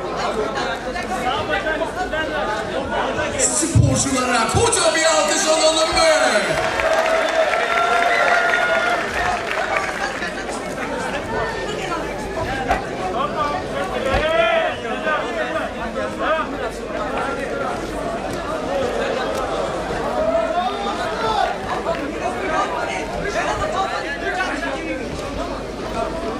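A crowd shouts and cheers throughout, in a large echoing hall.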